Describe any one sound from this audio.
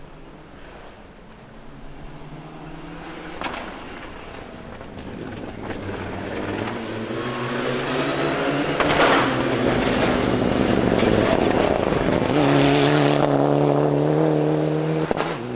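A rally car engine roars closer, rising in pitch as it accelerates.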